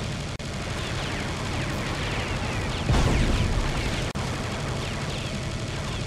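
A heavy gun fires rapidly and continuously.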